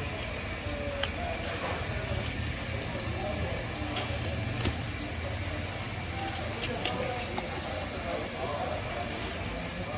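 A knife slices through raw fish flesh.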